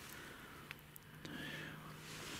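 A knife cuts softly through a mushroom stem.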